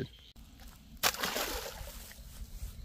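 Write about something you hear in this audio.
An object splashes into water.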